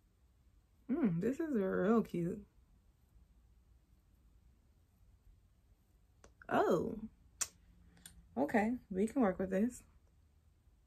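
A woman speaks calmly and close by, in short bursts.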